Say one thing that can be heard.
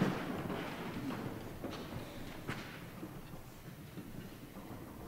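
A large choir sings a held note that fades out.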